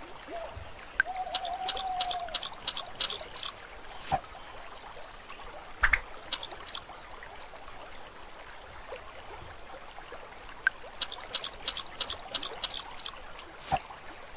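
A fishing float plops into water with light splashing.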